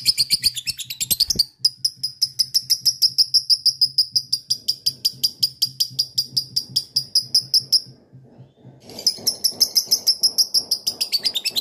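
A lovebird chirps in rapid, shrill bursts close by.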